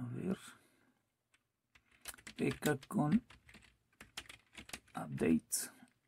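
Keys click on a keyboard as someone types.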